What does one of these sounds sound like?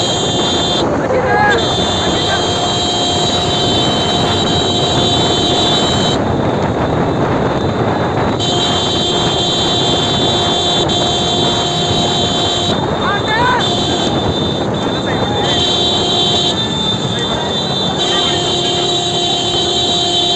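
Motorcycle engines roar close by.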